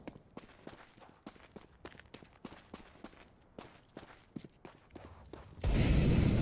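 Footsteps run quickly over hard stone.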